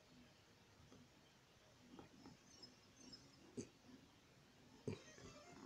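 A fingertip taps lightly on a touchscreen.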